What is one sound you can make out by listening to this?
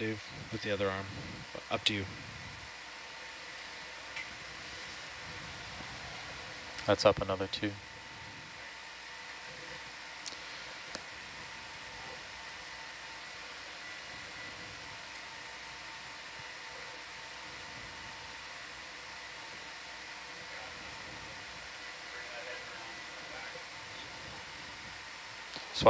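An underwater vehicle's motors hum steadily.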